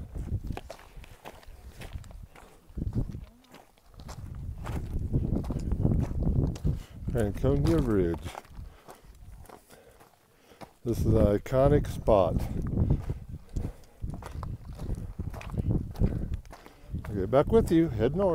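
Footsteps crunch on loose rocks and gravel.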